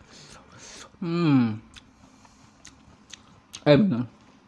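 A young man hums with pleasure close to a microphone.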